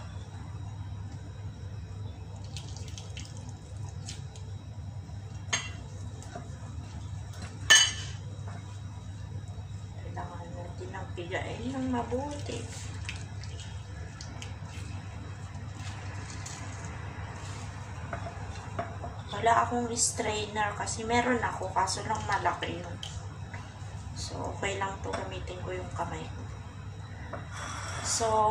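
Hands squeeze and knead soft, wet food.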